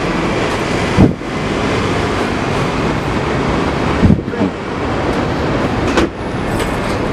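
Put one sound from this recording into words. A heavy vehicle door slams shut with a loud thud.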